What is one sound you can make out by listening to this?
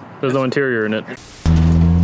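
A man speaks briefly with animation, close by.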